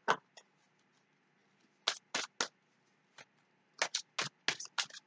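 Playing cards shuffle and slap together close by, in short bursts.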